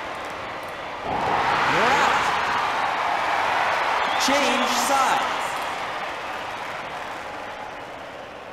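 A stadium crowd cheers and roars, then fades.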